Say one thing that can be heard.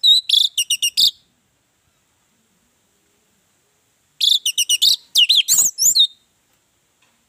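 An orange-headed thrush sings loud whistled phrases in short bursts.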